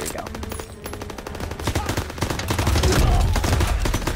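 A submachine gun fires a loud rapid burst.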